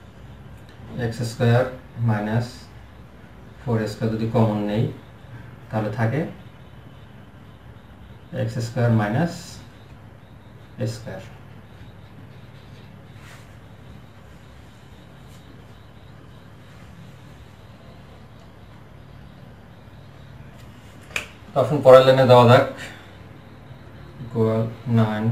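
A man talks calmly in short bursts, close by.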